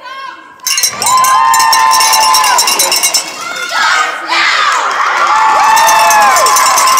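A group of young women shout a cheer in unison, echoing in a large hall.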